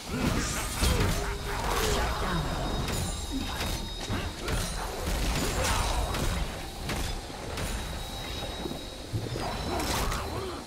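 Spells and weapons crash and zap in a fast, chaotic battle.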